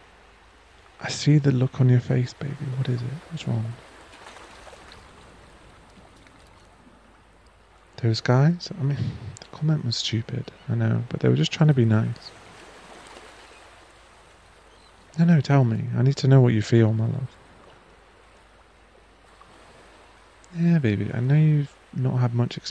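A man speaks softly and closely into a microphone, in short phrases with pauses.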